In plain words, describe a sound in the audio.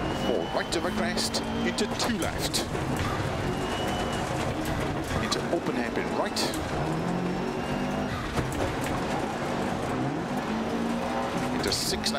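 A rally car engine revs hard, rising and falling as the gears shift.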